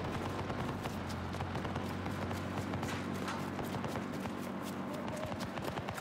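Footsteps run on dirt.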